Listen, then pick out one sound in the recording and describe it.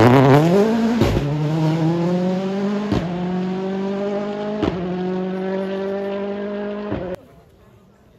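A rally car engine climbs through gear changes as it races away into the distance.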